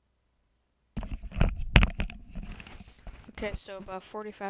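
A headset rustles and knocks against a microphone.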